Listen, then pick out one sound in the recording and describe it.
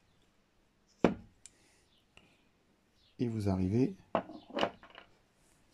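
A small plastic part clicks and knocks as it is handled.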